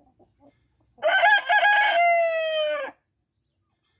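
A rooster crows loudly close by.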